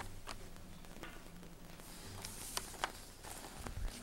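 Paper rustles as men pin a large map to a wall.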